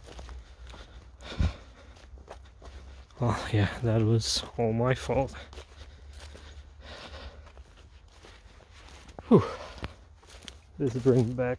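Footsteps crunch through dry crop stubble.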